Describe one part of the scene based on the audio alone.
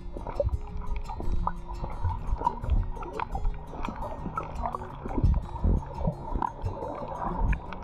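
Water gurgles and bubbles in a muffled underwater hush.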